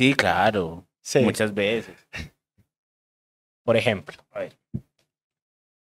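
A second man talks into a close microphone.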